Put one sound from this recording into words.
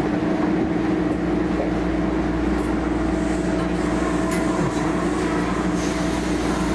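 A train hums steadily.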